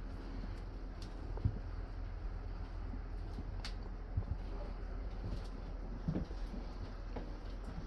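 Loose metal fittings rattle and clack now and then.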